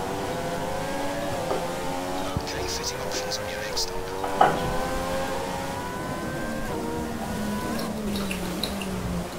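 Racing car engines whine at high revs, shifting pitch as gears change.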